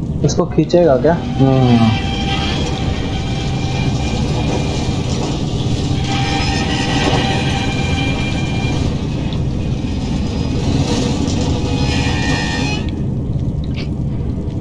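A wooden crate scrapes as it is pushed across the floor.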